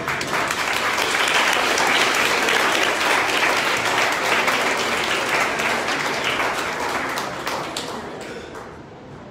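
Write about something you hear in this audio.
An audience claps and cheers in a large room.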